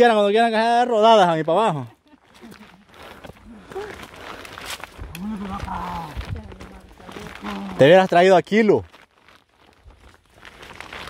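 Footsteps scuff on a cobblestone path.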